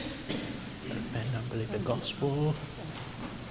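A man speaks quietly in a large echoing hall.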